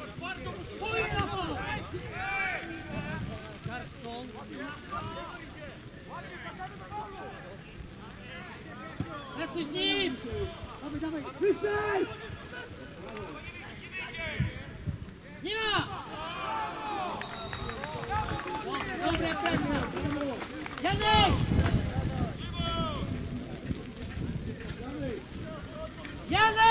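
Men shout to each other across an open field, some way off.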